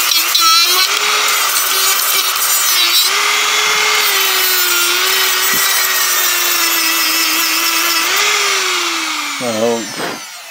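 A rotary tool whirs at high speed as it grinds into wood.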